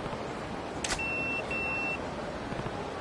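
A pager beeps twice with short, high electronic tones.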